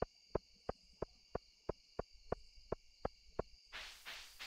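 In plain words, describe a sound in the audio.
Footsteps tap in a quick, steady rhythm.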